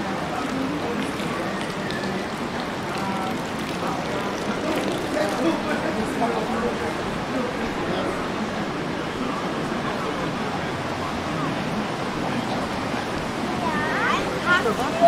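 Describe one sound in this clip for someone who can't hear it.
Voices of passers-by murmur outdoors in the open.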